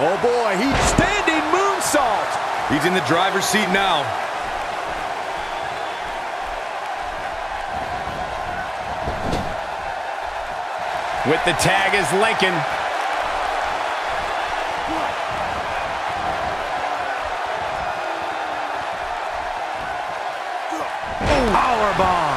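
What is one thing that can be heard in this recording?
Bodies thud onto a wrestling mat.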